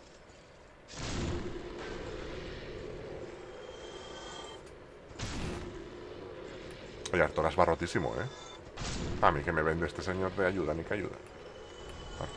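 Game sword strikes clang and thud.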